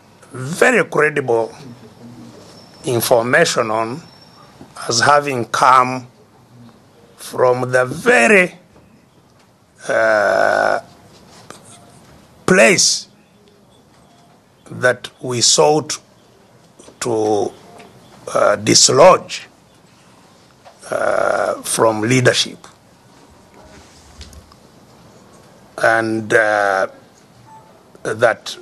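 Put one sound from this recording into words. An elderly man speaks with emphasis in short bursts with pauses, heard through a microphone.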